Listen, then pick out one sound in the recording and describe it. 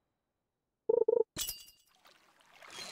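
A short chime rings as a fish bites.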